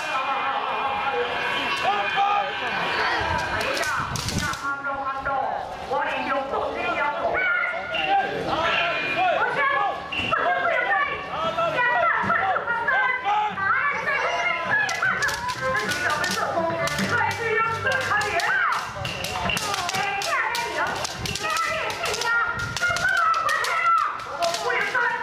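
A group of young people shout loudly and repeatedly outdoors.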